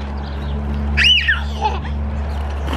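A young child squeals high and briefly outdoors.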